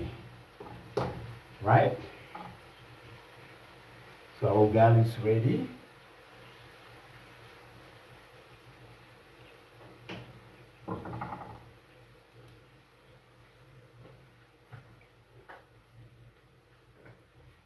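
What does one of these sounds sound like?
Meat sizzles in a frying pan.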